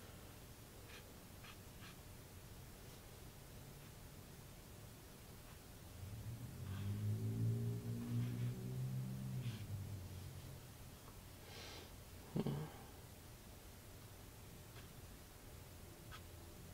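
A paintbrush swishes and scrapes across a canvas.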